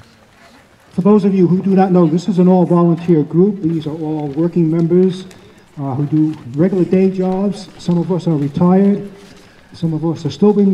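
A man speaks animatedly through a loudspeaker outdoors.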